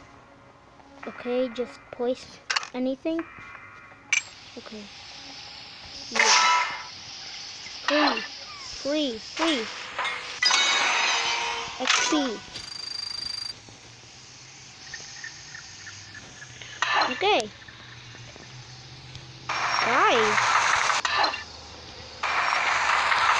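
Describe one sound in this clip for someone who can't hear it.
Short electronic chimes and clicks sound as buttons are tapped.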